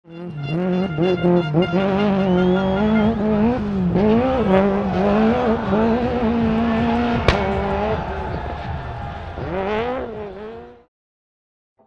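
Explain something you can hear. A rally car engine revs hard and roars loudly nearby.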